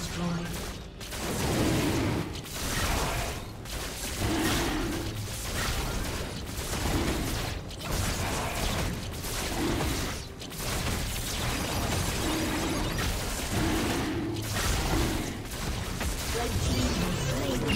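Spells and sword blows crash and whoosh in a busy game battle.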